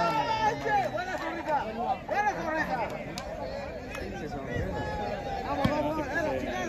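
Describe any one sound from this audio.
A crowd of spectators talks and shouts outdoors.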